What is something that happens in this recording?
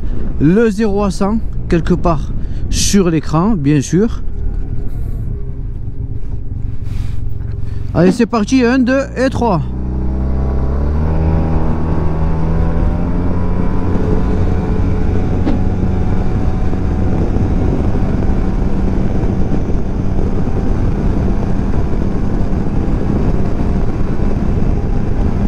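A scooter engine hums, then rises and drones steadily as it speeds up.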